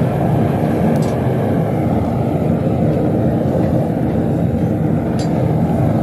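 Metal tongs clink against a crucible.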